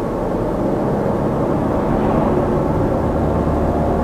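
A truck passes by in the opposite direction.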